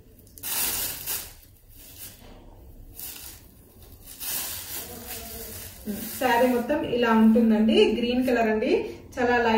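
Fabric rustles softly as hands smooth out a cloth.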